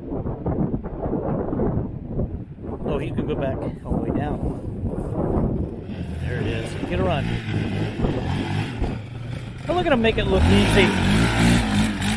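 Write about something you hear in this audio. A quad bike engine revs up and down, growing louder as it comes close.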